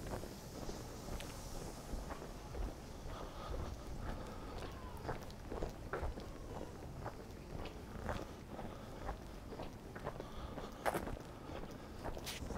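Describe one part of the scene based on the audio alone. Footsteps walk steadily on a paved street outdoors.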